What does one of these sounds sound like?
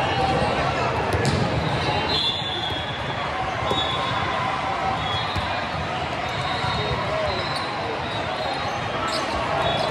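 A volleyball is struck with a smack.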